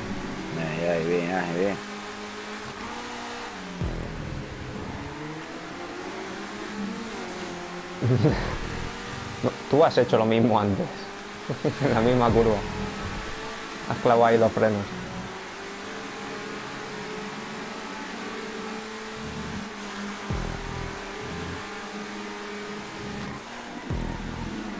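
A race car engine revs and drones steadily.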